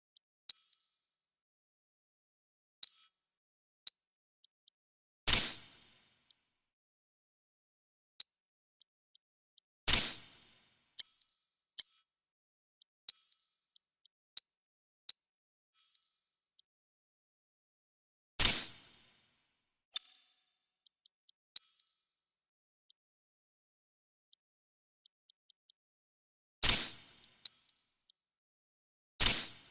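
Short, high menu clicks and chimes sound again and again as options are picked.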